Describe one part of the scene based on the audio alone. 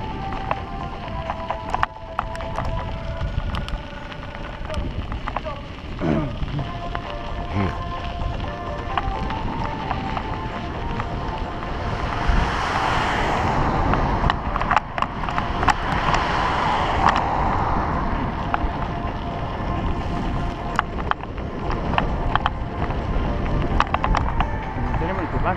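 Wind buffets a microphone outdoors.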